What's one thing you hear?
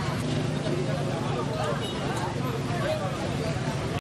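A crowd of men chatters nearby outdoors.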